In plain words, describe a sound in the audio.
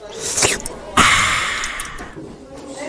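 A drink can snaps open with a fizzing hiss.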